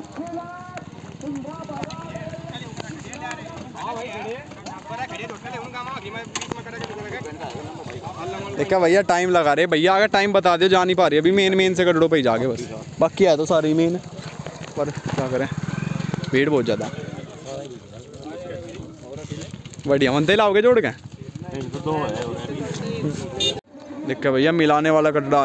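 Several men talk and call out to each other outdoors.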